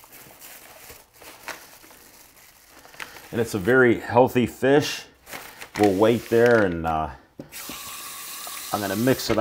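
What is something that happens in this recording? Plastic wrap crinkles and rustles under hands.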